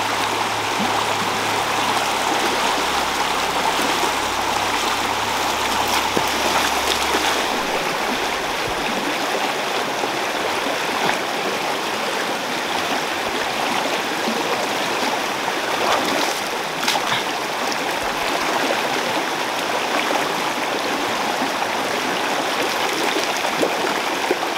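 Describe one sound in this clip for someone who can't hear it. A stream rushes and splashes over rocks close by.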